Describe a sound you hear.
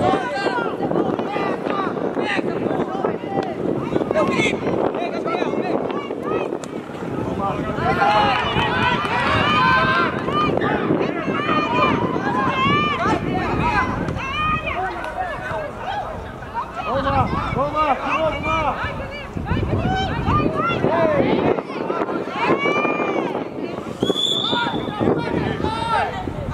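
Young players shout and call to each other across an open outdoor pitch.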